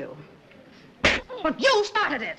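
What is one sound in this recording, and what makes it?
A cream pie splats into a man's face.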